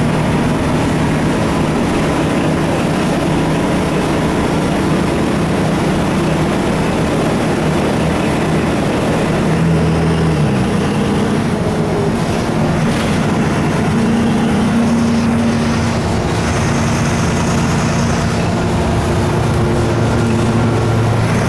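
The bus body rattles and vibrates as it drives along.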